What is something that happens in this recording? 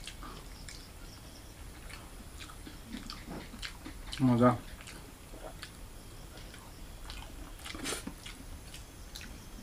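A young man chews food close up.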